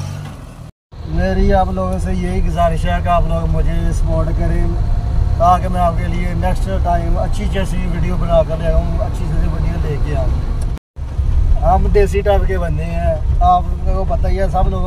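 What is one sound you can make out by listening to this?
A vehicle engine hums steadily from inside a cab.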